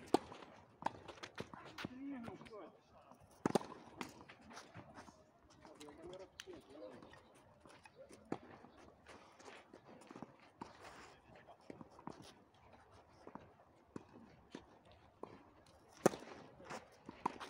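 Tennis balls bounce on a clay court.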